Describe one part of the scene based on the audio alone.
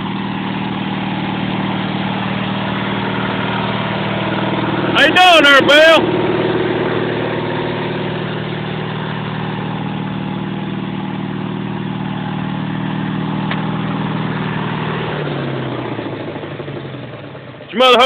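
A lawn mower engine hums steadily close by, then winds down.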